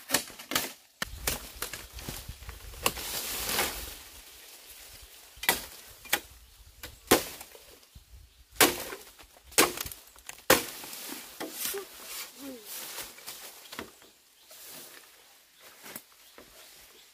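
Leaves rustle as a person pushes through undergrowth.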